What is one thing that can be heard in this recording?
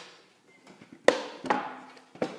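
A plasterboard snaps with a sharp crack.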